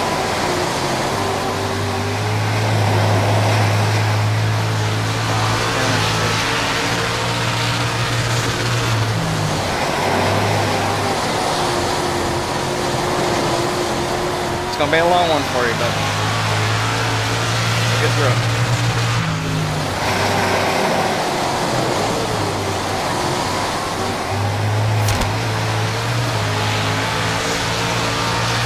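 A race car engine roars loudly, rising and falling as it shifts gears.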